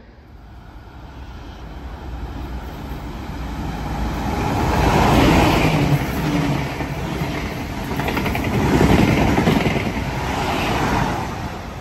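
A train approaches and roars past loudly, wheels clattering on the rails.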